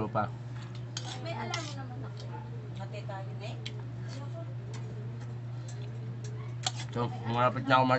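A metal spoon clinks against a plate.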